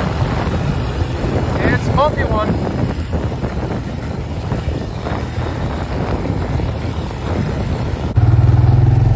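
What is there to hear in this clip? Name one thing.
An ATV engine rumbles steadily while riding.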